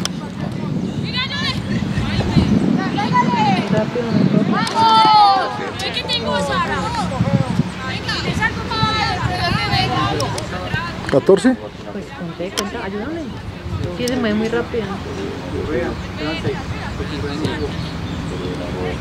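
Young women call out and shout to each other outdoors.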